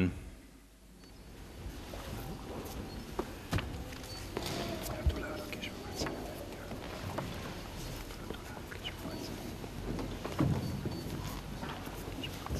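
A crowd murmurs and shuffles softly in an echoing hall.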